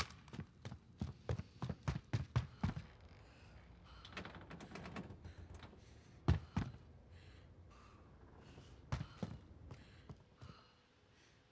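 Footsteps thud quickly on wooden stairs and floorboards.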